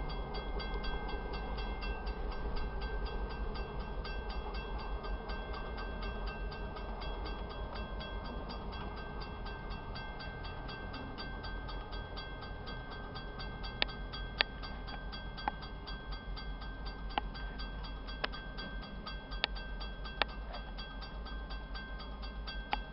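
A railway crossing bell rings rapidly and steadily.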